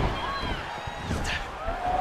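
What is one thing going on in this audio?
A kick lands with a thud.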